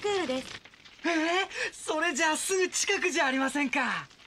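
A boy shouts excitedly.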